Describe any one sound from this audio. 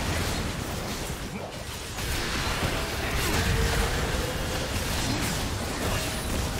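Magic spells whoosh and crackle in a fast fantasy battle.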